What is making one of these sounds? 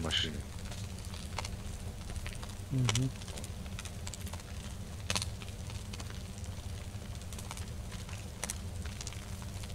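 A fire crackles in a metal barrel.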